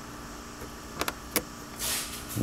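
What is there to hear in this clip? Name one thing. A plastic mount clicks into place.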